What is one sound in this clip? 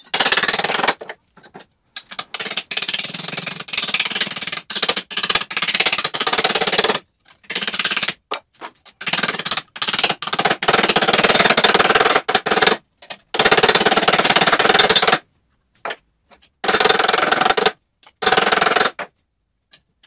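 A hammer rapidly taps on a metal sheet.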